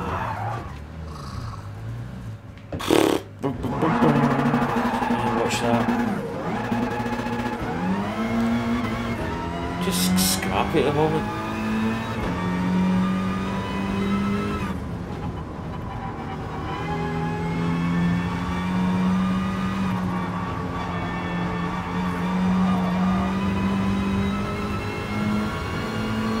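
A racing car engine revs up and down as the car speeds along.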